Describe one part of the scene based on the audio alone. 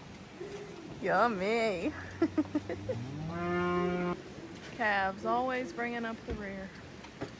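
Cattle moo loudly nearby.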